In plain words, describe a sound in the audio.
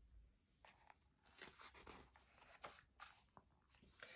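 A page of a book turns with a soft paper rustle.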